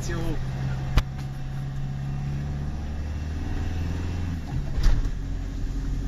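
The car bumps and rattles over a rough road.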